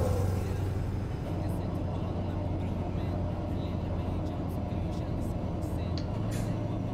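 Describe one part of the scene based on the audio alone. A truck engine drones steadily at cruising speed.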